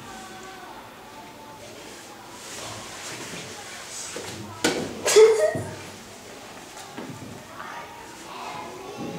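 A young girl giggles close by.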